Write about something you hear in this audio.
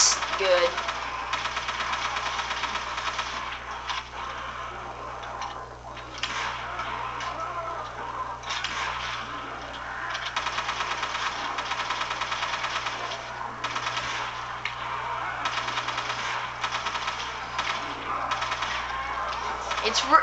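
Gunfire and game sound effects play from a television speaker.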